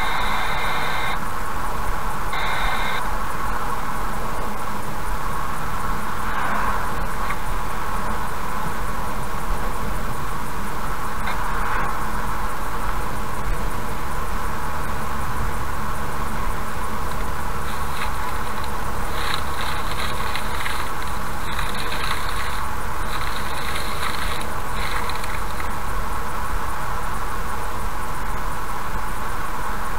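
A car's engine hums steadily as its tyres roll along a road.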